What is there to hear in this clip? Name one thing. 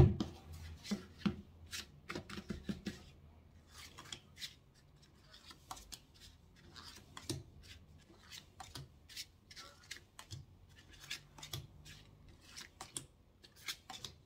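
Cards are laid down one after another with light slaps.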